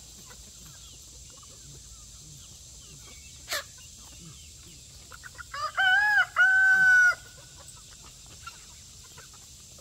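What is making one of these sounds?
Chickens cluck softly outdoors.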